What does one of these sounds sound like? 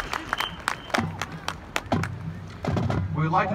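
A marching band's brass plays low sustained notes.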